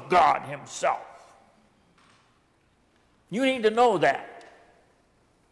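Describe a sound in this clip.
An older man speaks slowly and solemnly into a microphone in a large echoing room.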